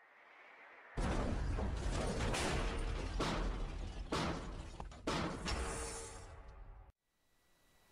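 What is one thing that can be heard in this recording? A metal container crumples with loud crashing blows.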